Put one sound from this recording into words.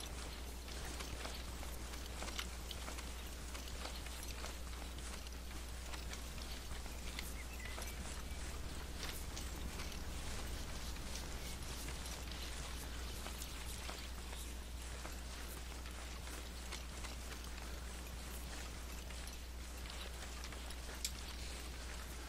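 Footsteps crunch steadily on dry ground and gravel.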